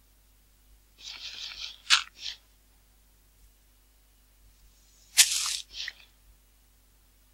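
Dirt crunches in short bursts as blocks are struck.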